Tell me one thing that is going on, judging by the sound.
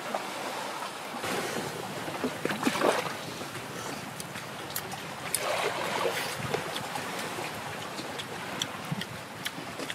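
A young boy crunches shells with his hands.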